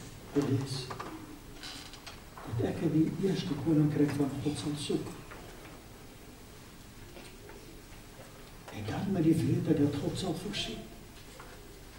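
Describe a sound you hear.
An elderly man preaches in bursts through a microphone in a room with a slight echo.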